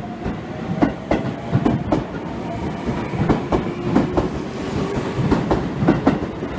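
A train rolls past close by, its wheels clattering over rail joints.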